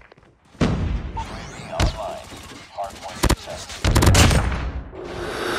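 A submachine gun fires in bursts.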